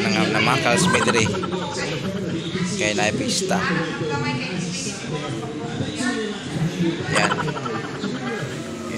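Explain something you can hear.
A young man talks casually and close up.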